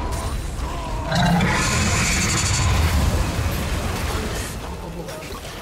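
Magical blasts and impacts crash and whoosh in a fight.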